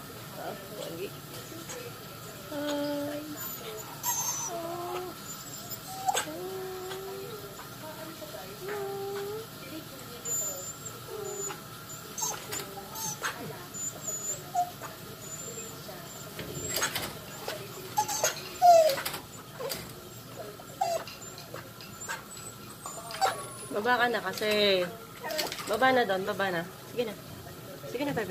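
A Siberian husky whines and yowls in short, gliding calls.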